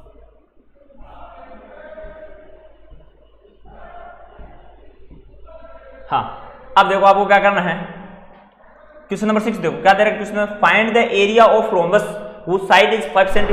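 A young man speaks into a close microphone, explaining with animation.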